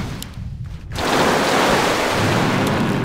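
A magic blast roars loudly with a rushing burst.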